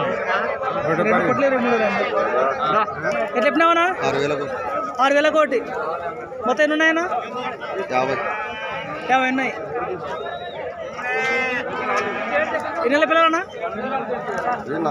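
Many goats bleat loudly and repeatedly close by.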